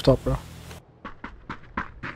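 Footsteps thud on a hard floor indoors.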